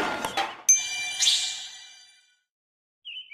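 A bright chime rings out and slowly fades.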